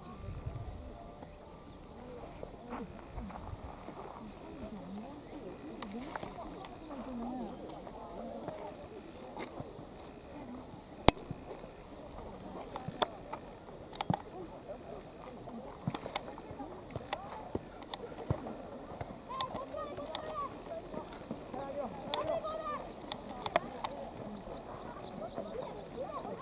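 Boys shout and call out to each other outdoors in the distance.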